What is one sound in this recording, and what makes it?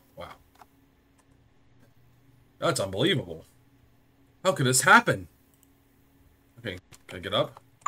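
A young man talks into a microphone with surprised animation.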